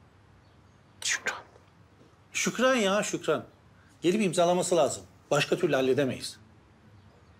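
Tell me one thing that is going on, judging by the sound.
A middle-aged man speaks in a pleading, weary voice.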